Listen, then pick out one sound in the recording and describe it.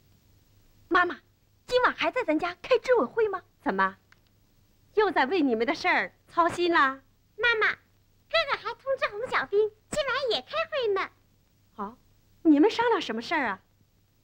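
A young woman speaks warmly and softly, close by.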